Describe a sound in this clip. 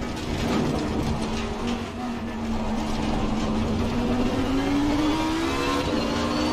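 A racing car engine roars and rises in pitch as it speeds up.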